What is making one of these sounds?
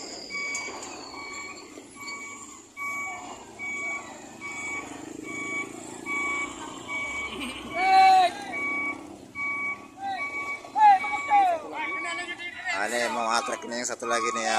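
A heavy truck engine rumbles low.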